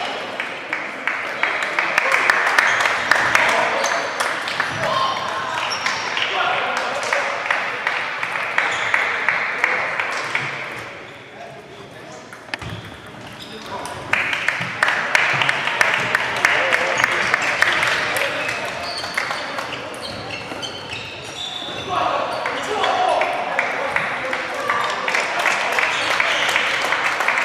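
A crowd of players murmurs and calls out across the hall.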